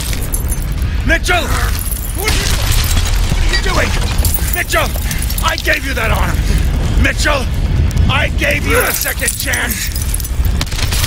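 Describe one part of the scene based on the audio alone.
A middle-aged man shouts desperately, close by.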